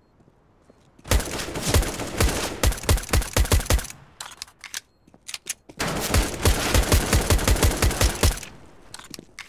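A silenced pistol fires quick shots.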